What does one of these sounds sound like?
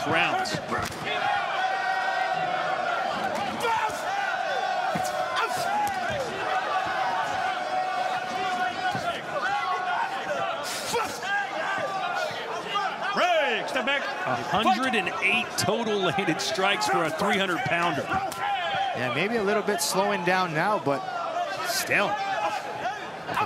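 Boxing gloves thud against a body as fighters trade punches.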